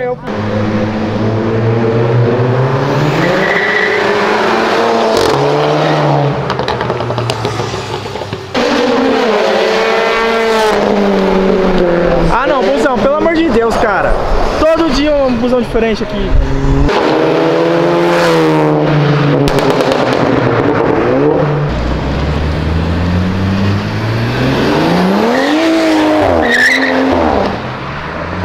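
A car engine revs loudly, rising and falling in pitch as the car speeds by.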